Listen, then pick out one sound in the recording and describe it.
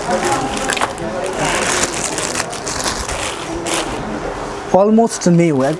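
A plastic bag crinkles as it is unwrapped.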